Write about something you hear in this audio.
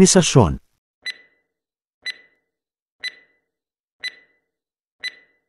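A countdown timer beeps once each second.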